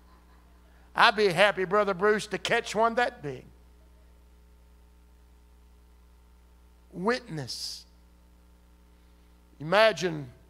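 A middle-aged man speaks with animation into a microphone in bursts, with long pauses.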